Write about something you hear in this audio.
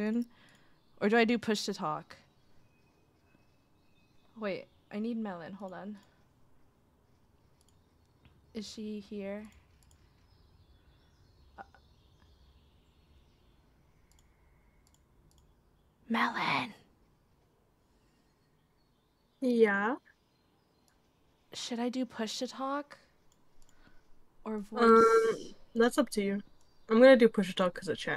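A young woman talks casually into a close microphone, in short bursts with pauses.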